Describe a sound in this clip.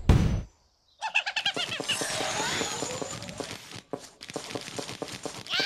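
Upbeat game music plays loudly.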